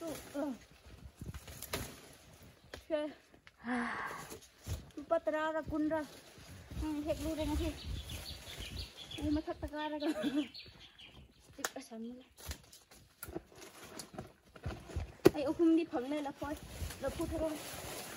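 Leaves and branches rustle and snap.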